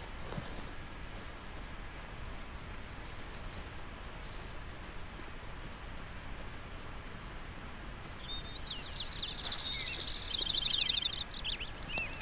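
Branches rustle and brush past as someone pushes through them.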